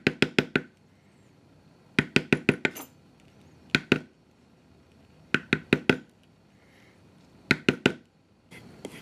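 A mallet taps a metal stamping tool into leather in quick bursts.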